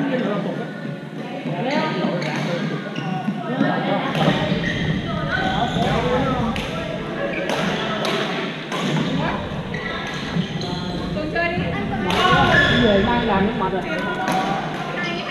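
Badminton rackets smack a shuttlecock with sharp pops.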